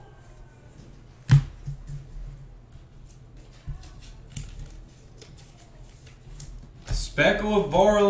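Trading cards rustle and flick as they are handled close by.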